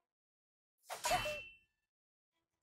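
A punch lands with a thud.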